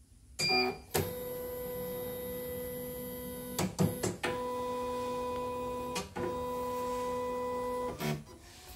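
A sewing machine hums steadily as its motor runs.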